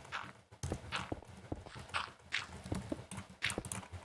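A stone block thuds into place.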